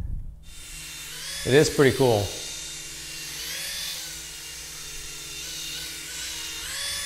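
A small flying toy whirs with a high buzz that rises and falls.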